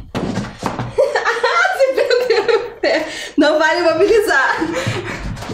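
A young woman speaks with animation nearby.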